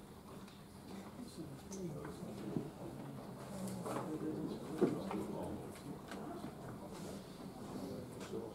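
Several men talk quietly in a large echoing hall.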